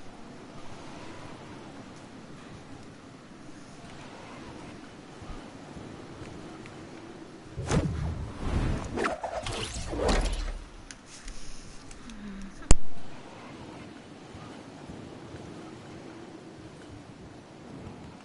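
Wind rushes steadily past a glider in flight.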